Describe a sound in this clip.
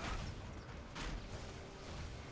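An electric blast crackles and fizzes.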